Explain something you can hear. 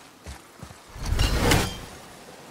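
A magical shimmering whoosh swells and fades.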